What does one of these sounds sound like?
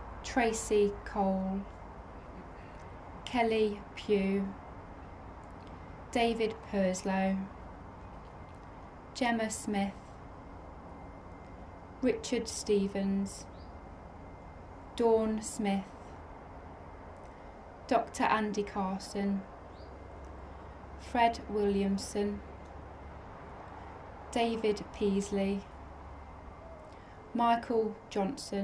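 A young woman reads out calmly through a microphone, in short phrases with pauses.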